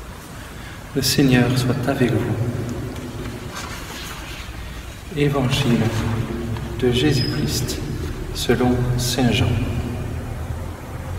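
A man speaks slowly through a microphone in a large echoing hall.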